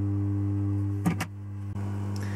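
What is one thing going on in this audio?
Hands knock and shuffle against a circuit board on a hard surface.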